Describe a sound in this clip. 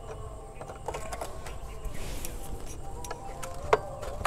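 A screwdriver scrapes and clicks against metal.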